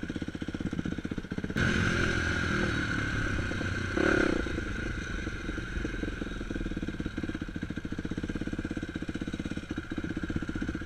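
A dirt bike engine revs and sputters up close.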